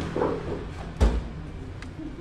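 A hand knocks once against a car door.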